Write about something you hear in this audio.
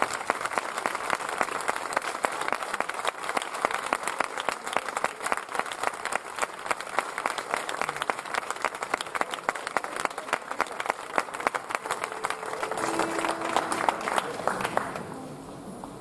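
An audience applauds warmly.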